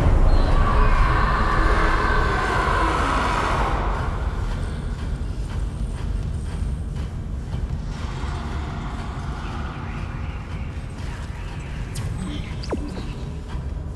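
Heavy boots clank slowly on a metal floor.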